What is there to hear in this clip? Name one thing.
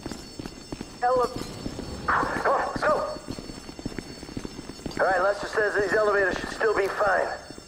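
A man speaks in short bursts.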